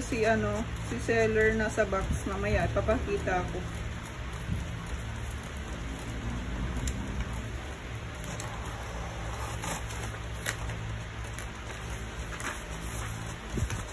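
Paper rustles and slides out of a printer.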